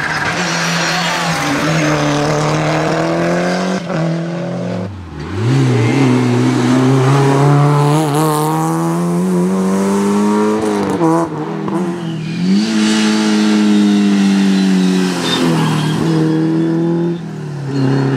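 Rally car engines roar loudly, revving hard as cars accelerate past one after another.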